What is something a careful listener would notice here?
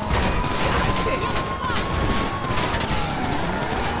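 A car crashes into another car with a thump.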